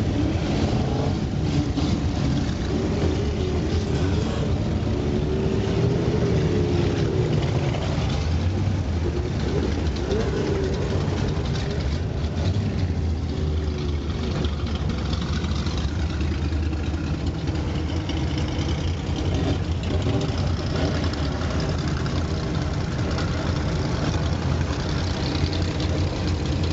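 An old car engine rumbles and idles close by.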